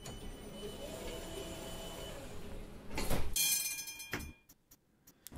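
A tram's electric equipment hums steadily while it stands at a stop.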